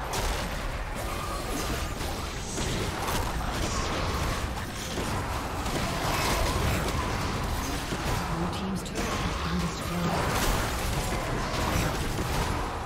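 Video game combat effects crackle and burst with spell blasts and hits.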